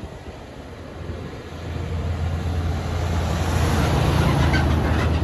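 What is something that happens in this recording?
A heavy truck rumbles as it approaches.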